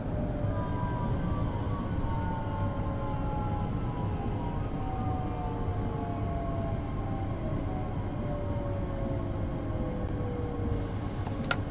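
An electric train's motors whine, slowly falling in pitch as the train slows.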